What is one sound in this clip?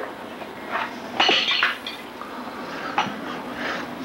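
A baby babbles and squeals nearby.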